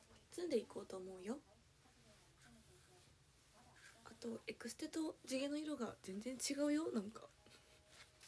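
A young woman talks close by, in a lively way.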